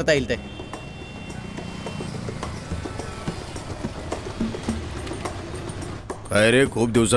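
Motorbike engines rumble along a busy street.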